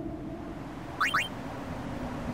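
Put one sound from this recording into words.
A short electronic chime rises quickly twice.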